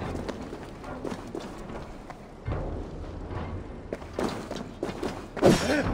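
Footsteps thud on a stone floor.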